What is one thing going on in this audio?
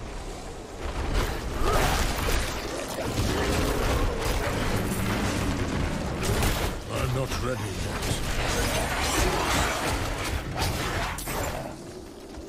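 Blows and clashes of a fierce fight ring out rapidly.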